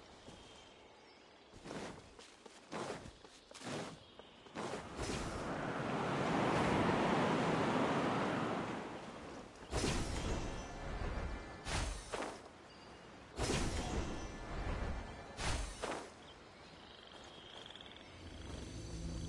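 Footsteps swish quickly through tall grass.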